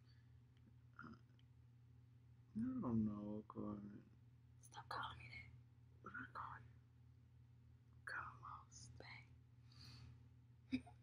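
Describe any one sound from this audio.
A young man speaks softly close by.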